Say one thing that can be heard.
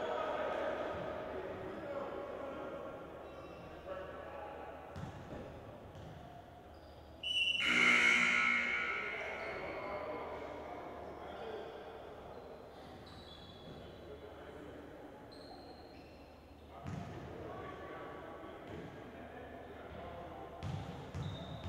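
Sneakers squeak on a court in a large echoing gym.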